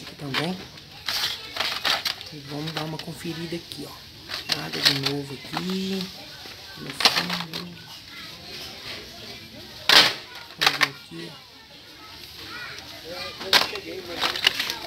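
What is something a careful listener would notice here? Plastic blister packs rustle and clack as they are handled.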